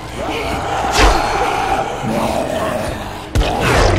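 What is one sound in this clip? A heavy blow thuds against a body.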